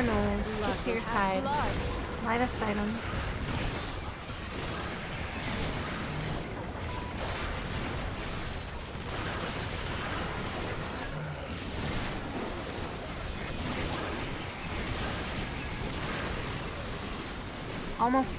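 Magic blasts and explosions crackle and boom again and again.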